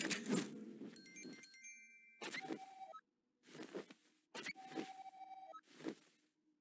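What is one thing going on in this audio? Short electronic blips chirp in a quick series.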